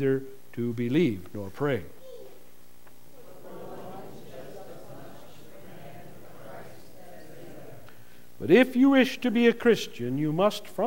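A man reads aloud through a microphone.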